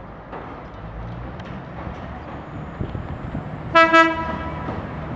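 A train rumbles as it approaches.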